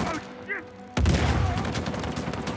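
A heavy explosion booms.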